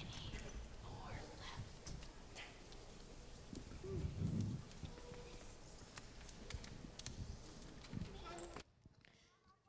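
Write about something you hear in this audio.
Young children chatter and murmur quietly.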